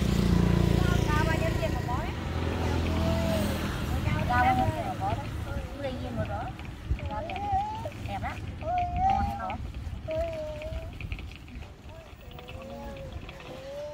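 A young woman talks cheerfully nearby.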